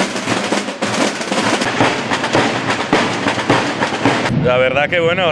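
Drums beat loudly in a lively rhythm.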